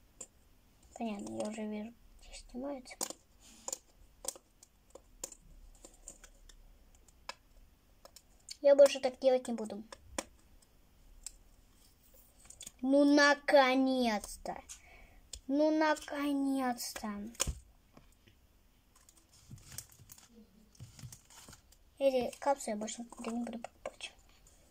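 A young girl speaks calmly, close by, in short bursts.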